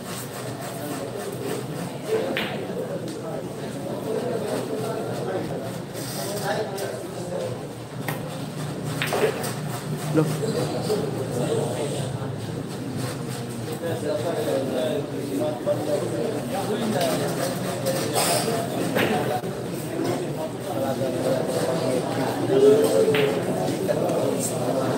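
A crowd of men murmurs and chatters in the background.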